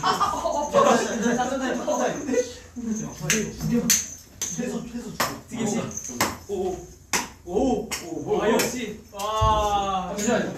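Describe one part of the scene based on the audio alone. Several young men talk and laugh loudly together.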